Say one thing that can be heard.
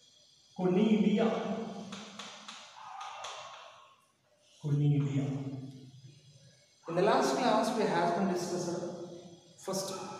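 A man lectures in a slightly echoing room, speaking with animation.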